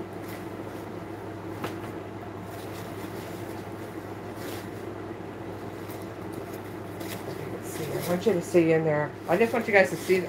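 Leather rustles and creaks as a bag is handled.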